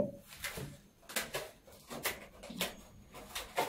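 Plastic wrap rustles and crinkles.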